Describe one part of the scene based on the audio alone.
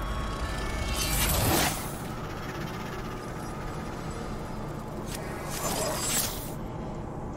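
A magical weapon whooshes and crackles with energy.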